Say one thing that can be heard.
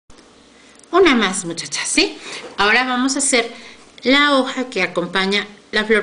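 A middle-aged woman speaks close to the microphone, calmly and with animation.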